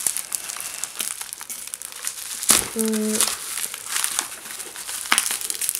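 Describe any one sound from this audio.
Bubble wrap crinkles and rustles close by as hands unwrap it.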